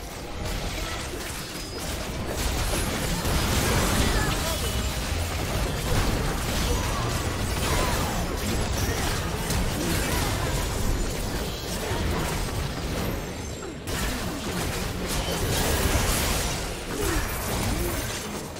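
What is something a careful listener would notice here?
Spell effects and strikes clash and burst in a busy battle.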